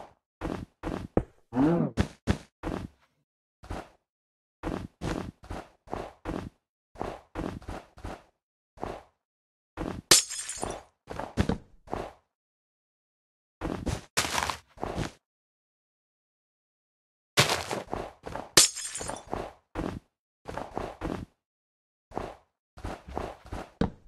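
Blocks crumble and break with short crunching sounds.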